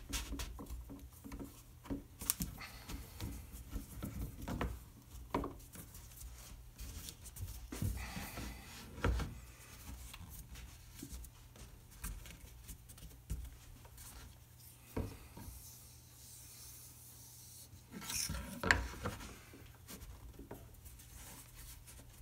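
A wooden ring slides and scrapes on a hard tabletop.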